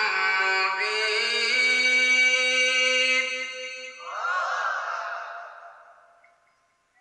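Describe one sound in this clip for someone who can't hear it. A man chants a long melodic recitation into a microphone in an echoing hall.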